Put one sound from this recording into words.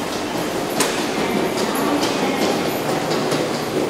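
A suitcase rolls along on its wheels.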